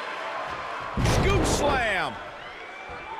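A body slams heavily onto a wrestling mat with a loud thud.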